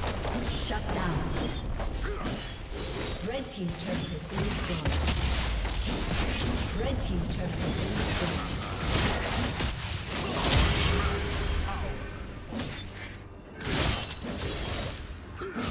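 Magic blasts and hits crackle and boom in a video game battle.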